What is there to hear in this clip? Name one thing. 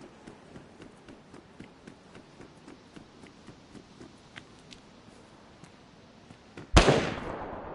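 Footsteps tread steadily on concrete.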